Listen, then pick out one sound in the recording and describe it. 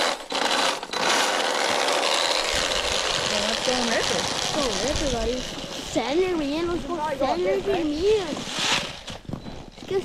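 A small electric motor whines loudly as a toy snowmobile speeds across snow.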